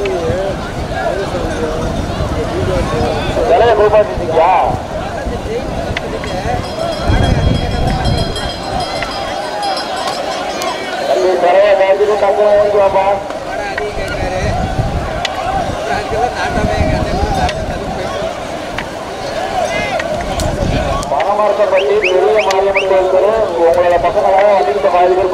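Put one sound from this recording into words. A crowd of men shouts and chants loudly.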